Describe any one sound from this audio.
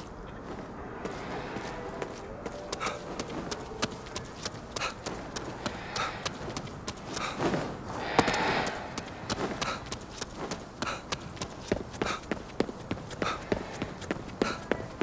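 Quick footsteps slap on wet pavement.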